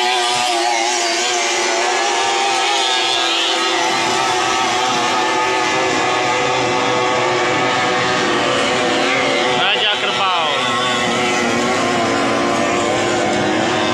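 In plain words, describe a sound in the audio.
A racing boat engine whines loudly and sweeps past with a falling pitch.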